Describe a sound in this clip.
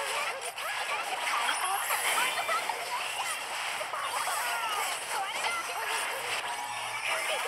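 Game battle sound effects clash and zap rapidly.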